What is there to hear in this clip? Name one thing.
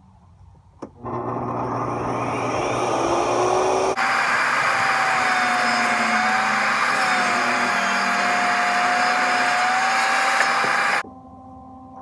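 A table saw cuts through wood.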